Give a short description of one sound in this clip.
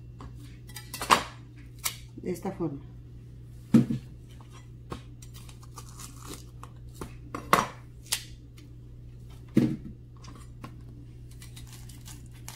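A knife thuds through corn onto a plastic cutting board.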